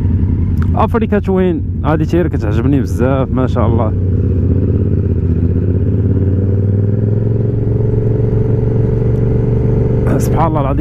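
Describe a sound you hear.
A motorcycle engine revs up and down sharply.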